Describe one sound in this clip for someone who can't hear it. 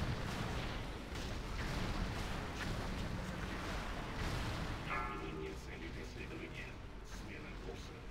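Magic spells whoosh and crackle in quick bursts over a low rumble.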